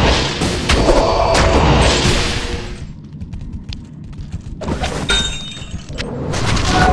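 Weapons strike and clash with sharp thuds.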